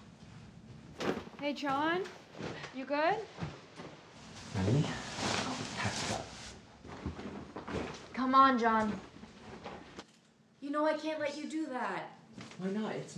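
A second young woman talks nearby.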